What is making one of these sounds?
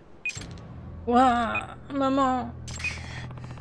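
A young boy wails loudly.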